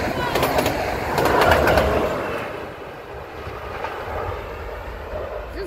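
A train rumbles and clatters past close by, then fades into the distance.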